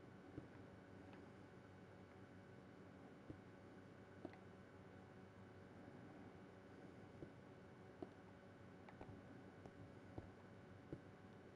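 Footsteps tap on stone blocks.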